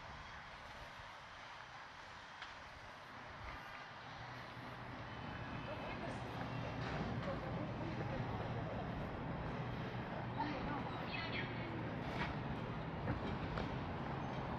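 A man's footsteps scuff on paving.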